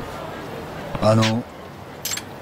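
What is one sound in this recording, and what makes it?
An elderly man groans close by.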